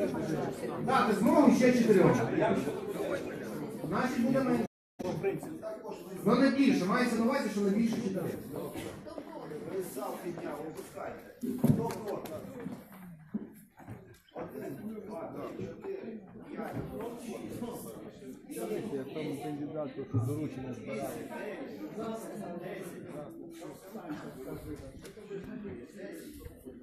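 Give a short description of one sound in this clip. A crowd murmurs and talks in a large echoing hall.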